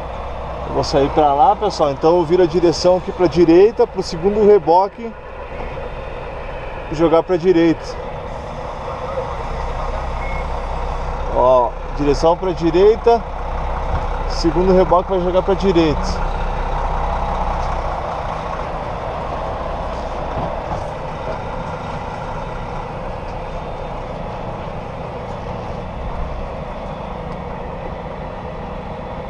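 A truck engine hums steadily throughout.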